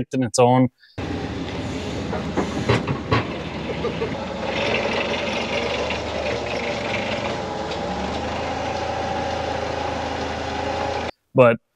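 A forklift engine runs steadily nearby.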